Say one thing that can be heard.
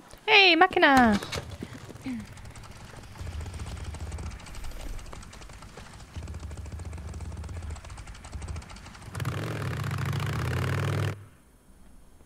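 A motorcycle engine idles with a low rumble.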